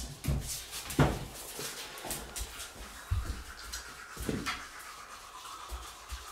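Dogs' paws patter and click on a hard floor.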